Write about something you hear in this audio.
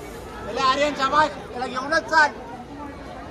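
A man chants loudly close by, with excitement.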